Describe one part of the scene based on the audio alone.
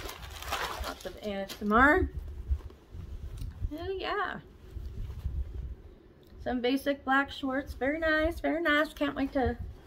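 Fabric rustles as a woman handles clothing.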